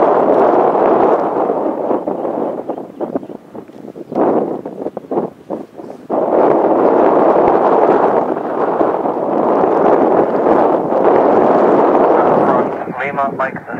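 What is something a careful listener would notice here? A jet airliner's engines roar loudly as it rolls down a runway.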